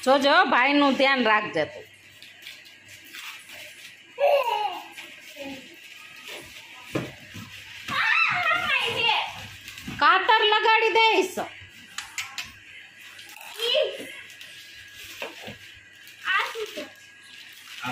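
A young child talks excitedly close by.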